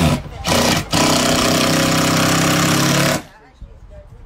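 A cordless drill whirs as it drives a screw into wood.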